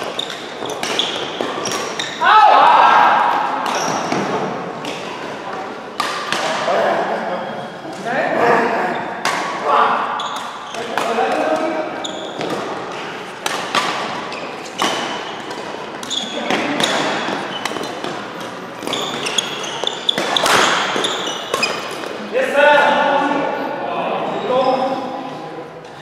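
Sports shoes squeak on a court floor.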